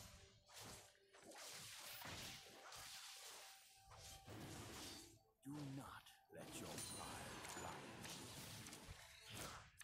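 Weapons clash and strike in quick bursts.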